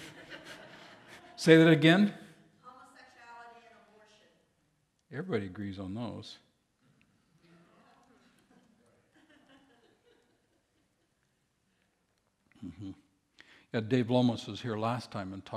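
A man speaks through a microphone in a large hall, pausing between phrases.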